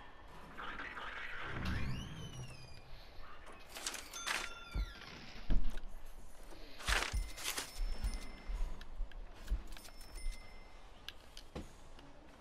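Soft interface clicks and blips sound as menu items are picked.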